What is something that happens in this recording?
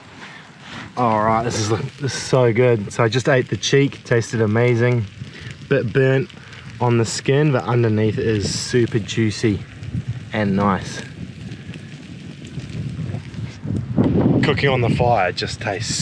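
A man speaks with animation close to the microphone.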